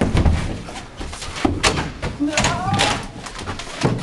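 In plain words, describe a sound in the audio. A door's push bar clanks and the door swings open.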